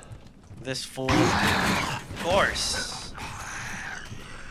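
A monster snarls and screeches loudly.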